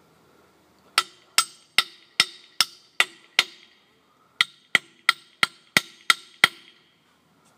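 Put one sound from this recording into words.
A blade taps sharply in quick bursts against a wooden post.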